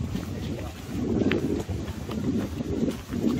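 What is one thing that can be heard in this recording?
A jogger's footsteps crunch on gravel close by.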